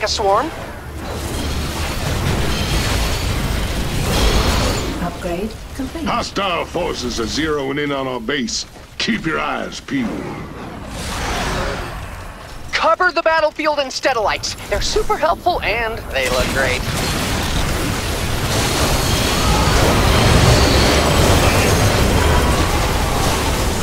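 Rapid gunfire and explosions rumble and crackle through a battle.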